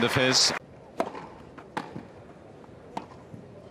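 A tennis ball is bounced on the ground before a serve.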